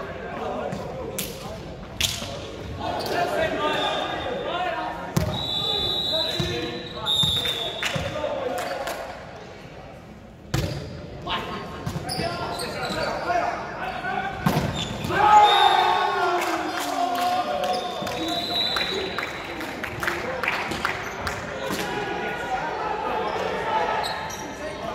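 Young men call out and shout during play.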